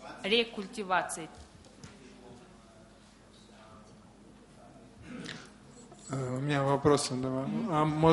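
A man speaks into a microphone, heard through loudspeakers in a large room.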